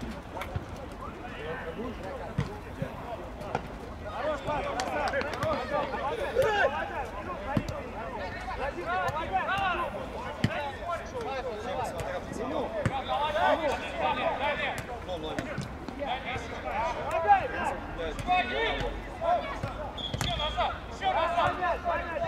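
Young men shout and call to each other across an open field.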